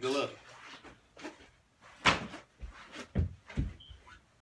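Sneakers thump and shuffle on the floor.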